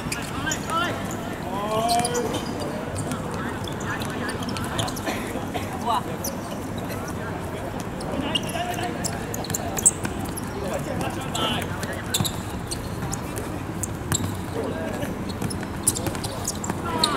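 Young men shout to each other during a game.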